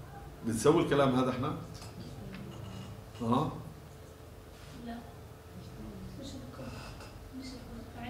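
A middle-aged man speaks calmly, heard up close.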